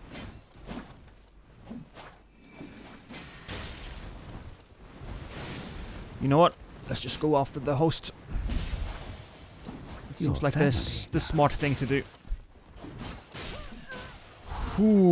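A blade swishes and clangs in quick strikes.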